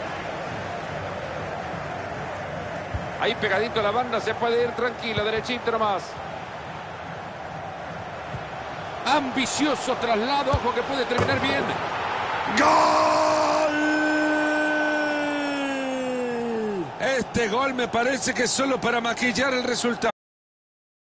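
A large stadium crowd roars steadily and cheers loudly.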